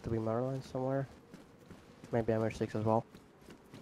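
Footsteps run on hard pavement.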